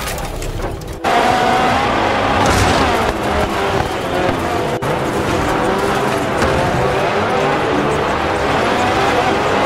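Off-road buggy engines rev over dirt.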